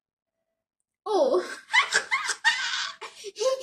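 A young woman laughs loudly and shrieks with excitement.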